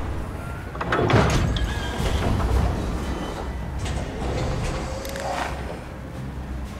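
Plastic bricks clatter as a machine falls apart.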